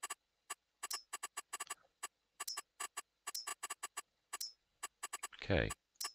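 Short soft clicks tick quickly one after another.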